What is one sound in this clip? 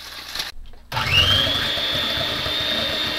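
An electric hand mixer whirs loudly.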